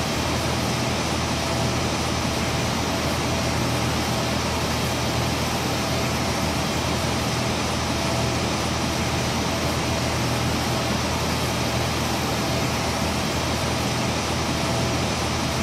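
Jet engines roar steadily with a loud rushing hum.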